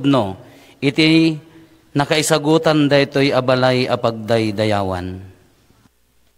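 A man sings a chant through a loudspeaker.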